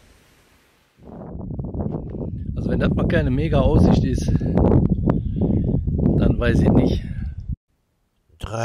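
An elderly man talks calmly and close by into a microphone.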